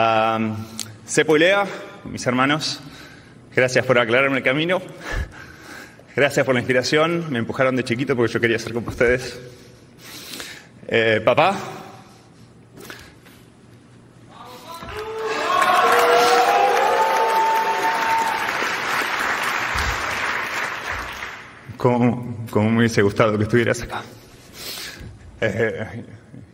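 A man speaks with emotion into a microphone in a large echoing hall.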